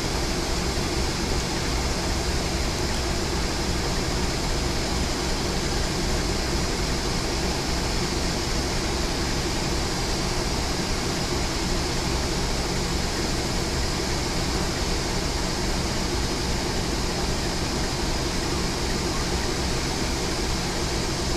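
Train wheels clatter and roar along the rails.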